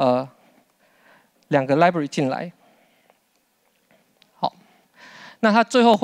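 A man speaks steadily through a microphone in a large hall.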